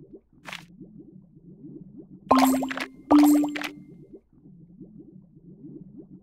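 Soft, cheerful game music plays throughout.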